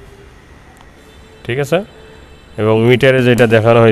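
A key clicks as it turns in a motorcycle's ignition lock.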